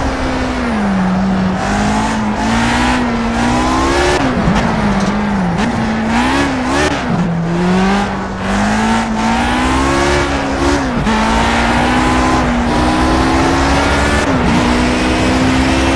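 A racing car engine roars close by, revving up and down as the gears change.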